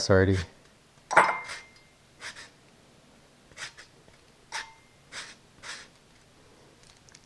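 A grater scrapes lightly across a lemon's peel.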